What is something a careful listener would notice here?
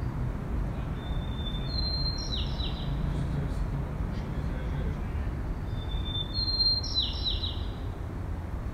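A bird chirps in short bursts outdoors.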